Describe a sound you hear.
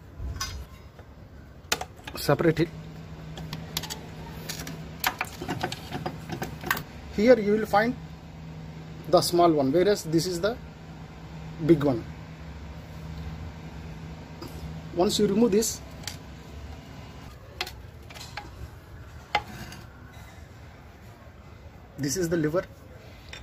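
Small metal parts click and clink against each other.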